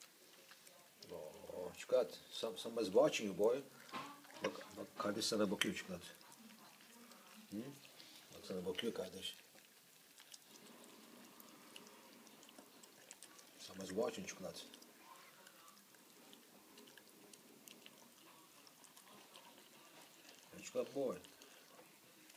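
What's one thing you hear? A dog eats noisily from a metal bowl, chomping and lapping.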